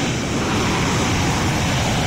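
A jet airliner roars as it takes off in the distance.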